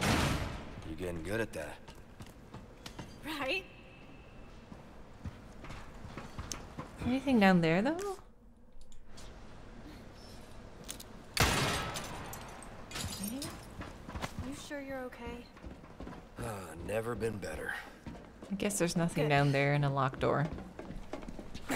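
A young woman talks into a close microphone.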